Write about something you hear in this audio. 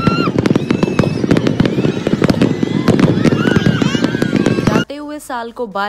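Fireworks explode with loud, rapid bangs.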